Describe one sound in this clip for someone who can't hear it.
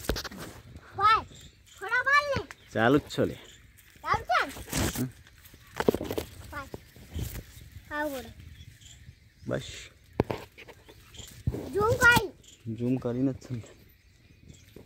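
A young child speaks and calls out excitedly nearby.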